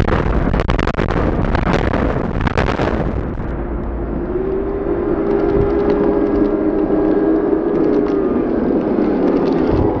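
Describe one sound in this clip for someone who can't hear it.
A tall building collapses with a deep, rumbling roar.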